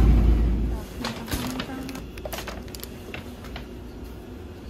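A plastic bag crinkles close by.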